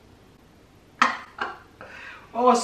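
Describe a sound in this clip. A young woman laughs loudly nearby.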